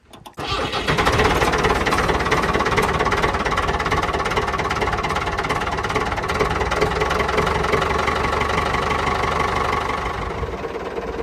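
A diesel farm tractor engine drones, heard from the driver's seat.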